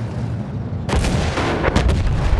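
A shell explodes with a loud boom.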